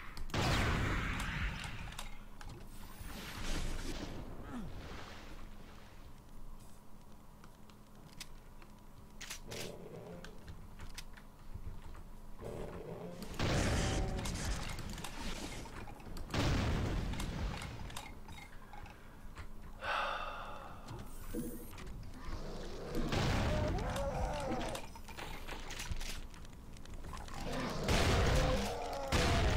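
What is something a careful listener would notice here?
Shotgun blasts boom loudly, again and again.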